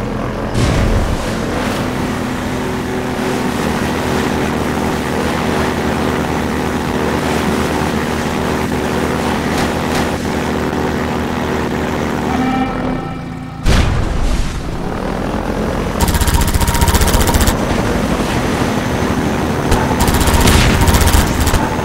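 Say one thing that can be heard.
A vehicle engine hums and revs steadily.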